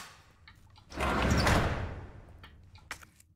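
A metal locker door unlocks and swings open.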